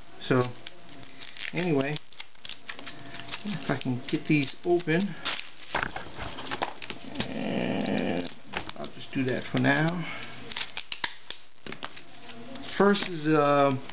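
A plastic case clicks and rattles as hands handle it.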